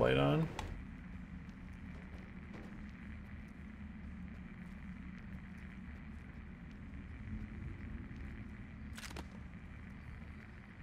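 Footsteps crunch softly over rocky ground.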